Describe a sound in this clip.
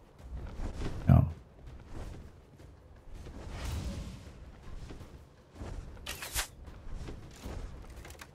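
Electric magic crackles and fizzes in bursts.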